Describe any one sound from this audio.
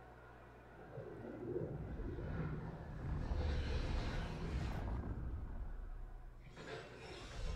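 A deep rumbling roar swells and fades.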